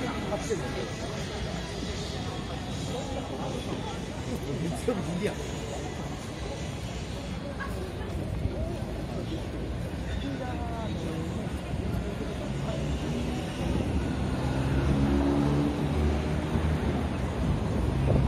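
A crowd of people chatters on a busy street outdoors.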